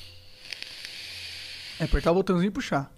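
A man exhales a long breath of vapour close to a microphone.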